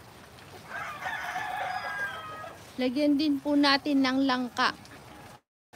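A woman speaks loudly and with animation close by.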